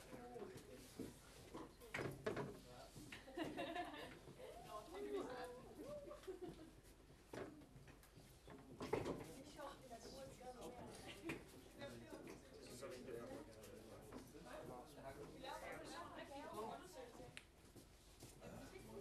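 Several young adults chat and murmur nearby.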